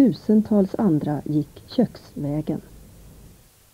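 A woman speaks calmly and clearly into a microphone, close by.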